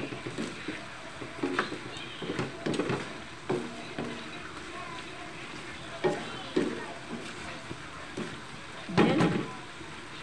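A wooden spoon stirs and scrapes food in a metal wok.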